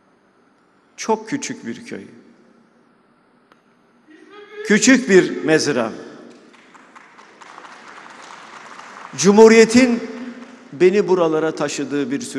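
An elderly man speaks with emphasis into a microphone, in a large echoing hall.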